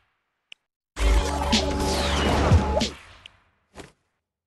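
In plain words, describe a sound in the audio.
A bright musical jingle plays with a whooshing swell.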